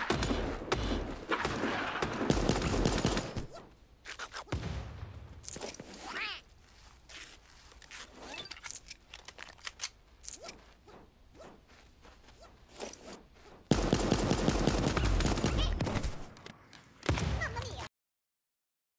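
Video game sound effects of combat and gunfire play.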